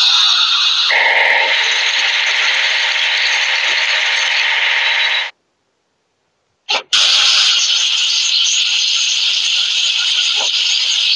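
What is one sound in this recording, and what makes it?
A spinning brush whirs and scrubs.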